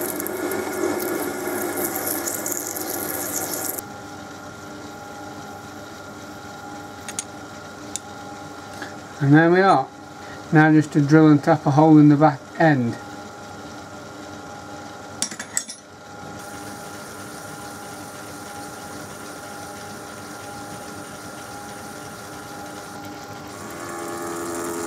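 A cutting tool scrapes and hisses against spinning metal.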